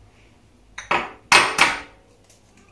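An egg is cracked against a glass bowl.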